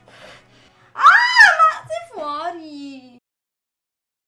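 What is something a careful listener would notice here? A young woman screams loudly with her mouth wide open.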